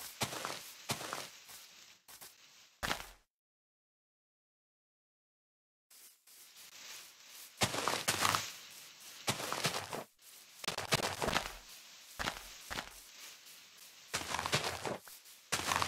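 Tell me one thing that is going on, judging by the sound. Plants snap and pop as they are broken.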